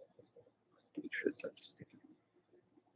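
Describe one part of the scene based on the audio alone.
Trading cards are shuffled and set down on a soft surface.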